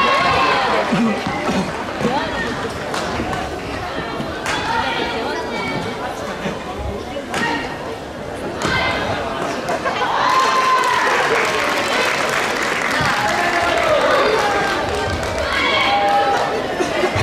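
Sports shoes squeak on a hard court floor.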